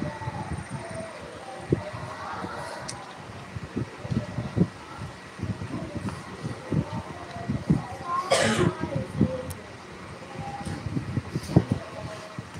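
A room full of students rustles and shifts quietly.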